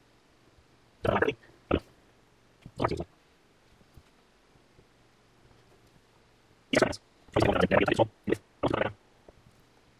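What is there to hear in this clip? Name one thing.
Magnet strips snap and rustle onto a perforated metal plate.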